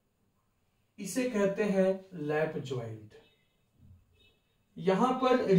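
A young man speaks clearly and calmly, as if explaining.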